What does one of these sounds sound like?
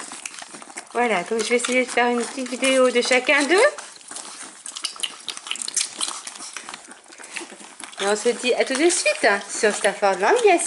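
Puppies whine with high, squeaky cries.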